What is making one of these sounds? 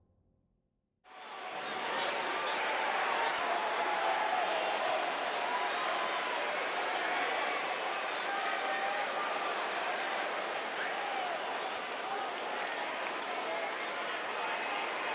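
A large crowd cheers and whistles steadily in a big echoing arena.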